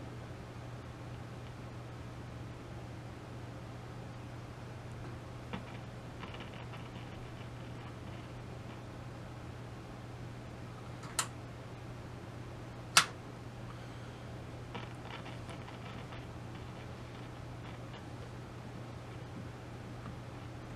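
Knobs click as a hand turns them.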